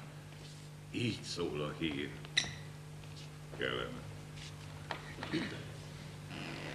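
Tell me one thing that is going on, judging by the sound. An elderly man speaks on a stage in a slow, dramatic way.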